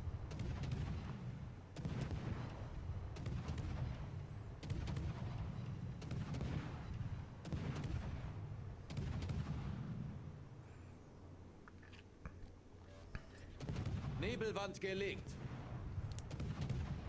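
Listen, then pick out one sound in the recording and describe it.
Shells explode with sharp cracks.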